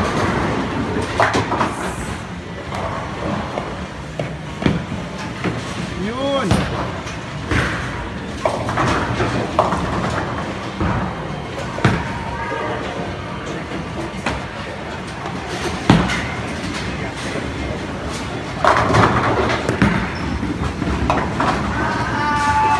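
Bowling balls roll down wooden lanes with a low rumble.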